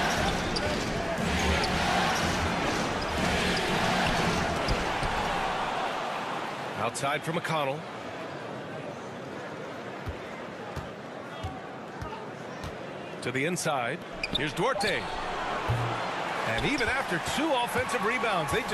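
A crowd cheers and murmurs in a large arena.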